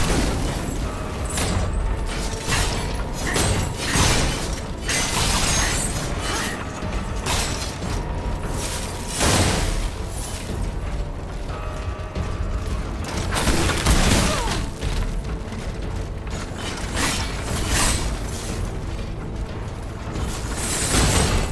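Swords clash and strike in a fast fight.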